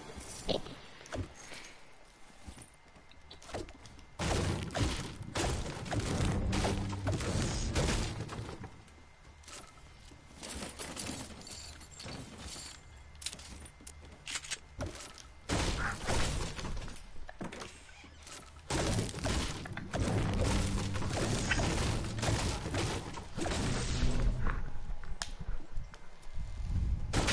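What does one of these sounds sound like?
Footsteps patter quickly across a wooden floor.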